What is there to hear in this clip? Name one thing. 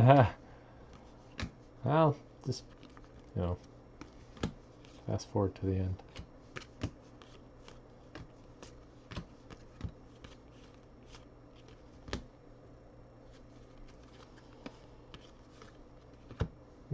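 Stiff trading cards click and flick as they are shuffled through by hand.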